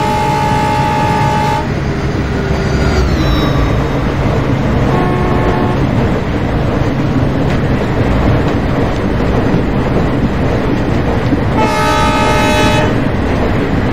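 A train horn blows loudly in short blasts.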